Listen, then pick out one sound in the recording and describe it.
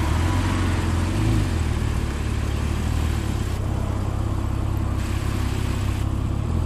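A sports car engine idles with a deep, rumbling burble close by.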